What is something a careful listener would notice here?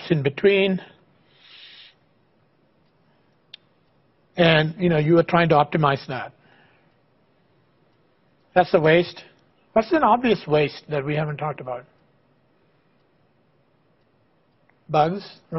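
A middle-aged man lectures calmly through a microphone, with pauses between phrases.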